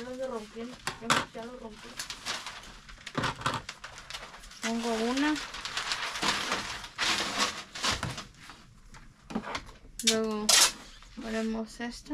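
Cardboard boxes rustle and thump as they are handled.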